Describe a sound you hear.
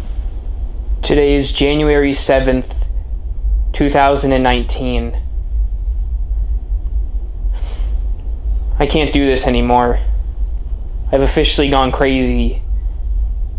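A man speaks quietly and close by in short, slow phrases, with long pauses between them.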